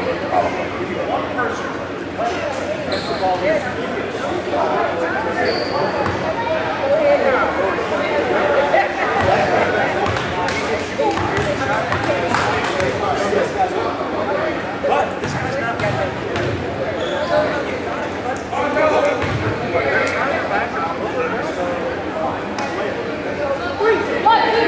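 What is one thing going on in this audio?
Many voices chatter in a large echoing gym.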